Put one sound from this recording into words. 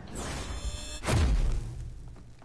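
A heavy thud sounds as a figure lands.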